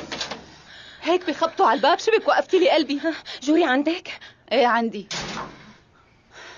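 A woman speaks with agitation, close by.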